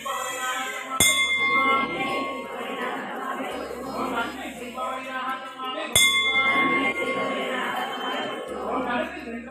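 A group of women chant together in unison.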